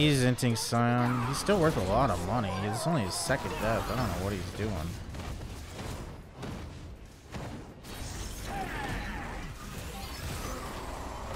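Game spell effects zap and crackle in quick bursts.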